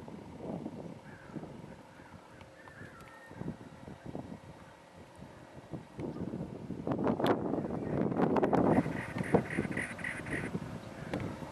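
A small bird chirps and trills nearby.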